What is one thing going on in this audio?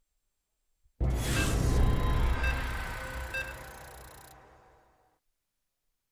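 Loud electronic game music swells up suddenly and then fades away.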